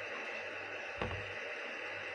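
A hand knocks lightly against a kettle's lid knob.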